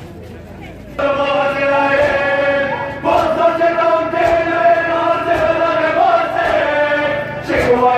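A man's voice sings a lament loudly through a loudspeaker.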